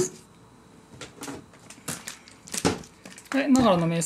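A plastic bottle crackles in a man's hands.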